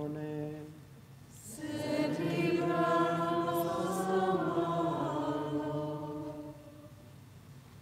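A man chants in a low, steady voice.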